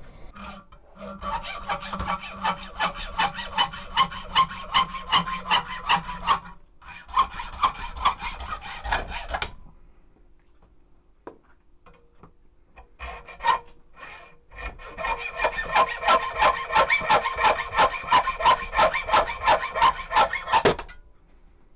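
A hacksaw cuts rapidly back and forth through wood.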